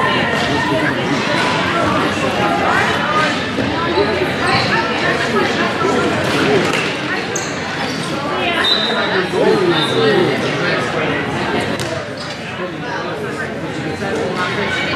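Sticks clack against a ball and the floor.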